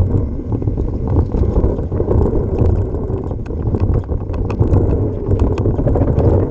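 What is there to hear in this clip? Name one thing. Small stones click and rattle under the wheels.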